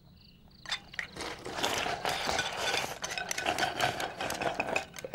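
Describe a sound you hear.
Men slurp food from bowls.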